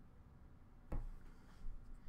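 A card is set down with a soft tap.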